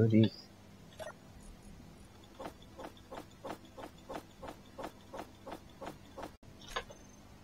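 Short clicks tick quickly one after another as items are moved.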